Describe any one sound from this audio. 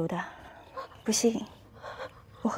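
A young woman answers in a startled voice.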